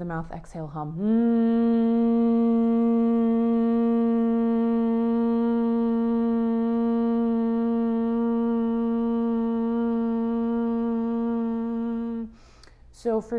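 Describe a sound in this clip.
A young woman chants one long, steady humming tone.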